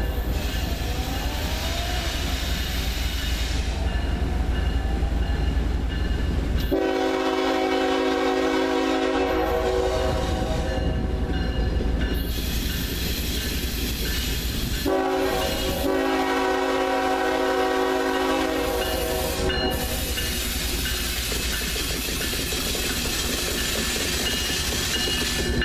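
Diesel freight locomotives rumble as they approach.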